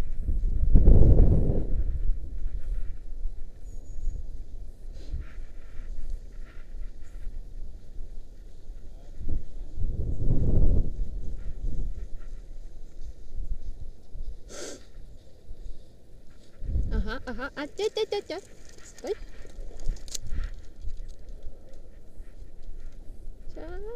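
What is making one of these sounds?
Wind rushes and buffets past, gusting loudly at times.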